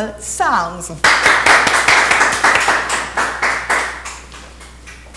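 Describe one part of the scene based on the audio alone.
A woman claps her hands.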